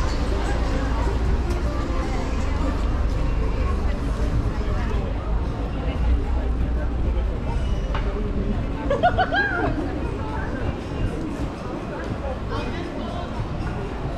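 A crowd of people murmurs and talks nearby outdoors.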